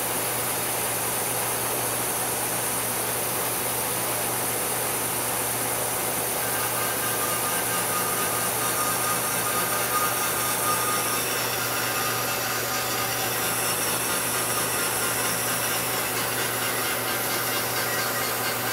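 A milling machine hums steadily.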